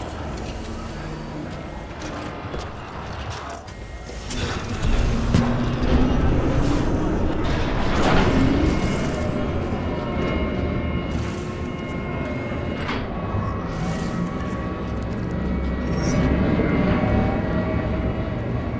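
Footsteps clank on a metal floor.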